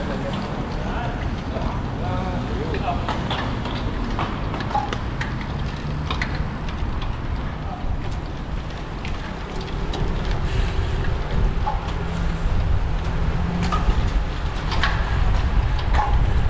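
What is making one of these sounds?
Bicycle freewheels click and tick.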